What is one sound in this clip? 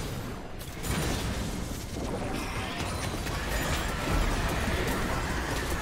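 Magic spells crackle and burst in a game battle.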